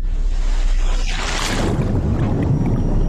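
Water splashes as a hand dips into the sea.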